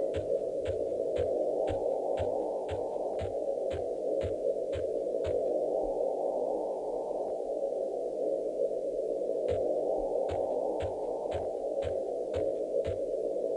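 Footsteps thud in a quick, steady rhythm on soft ground.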